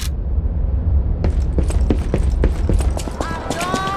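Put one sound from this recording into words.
Footsteps hurry across stone paving.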